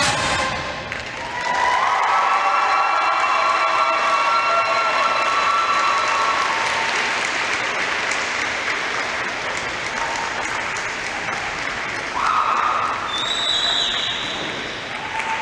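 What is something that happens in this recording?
A large crowd cheers, screams and applauds.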